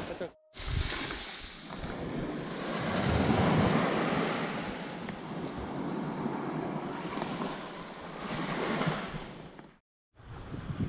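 Small fish rustle and slap as fingers pull them from a net.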